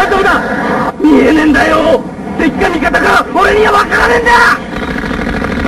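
A young man shouts in panic over a radio.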